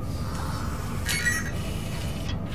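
An electronic console powers on with a short burst of bright chirps.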